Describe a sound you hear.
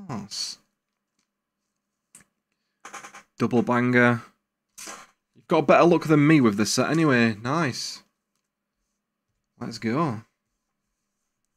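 Cards slide and flick against each other.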